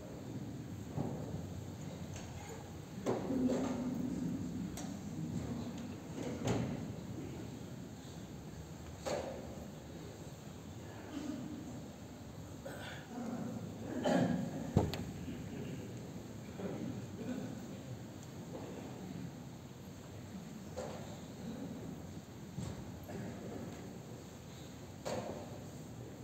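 Many people murmur quietly in a large echoing hall.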